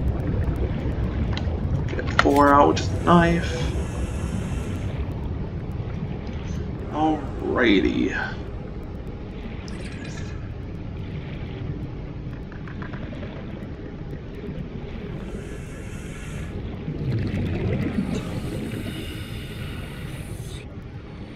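Water rumbles and swirls with a low, steady underwater murmur.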